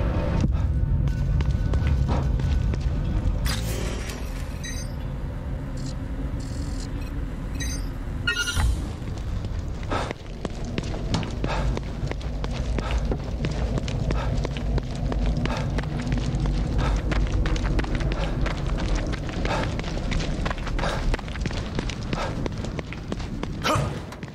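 Footsteps splash on a wet path.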